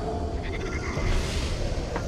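A blade slashes and strikes with a heavy hit.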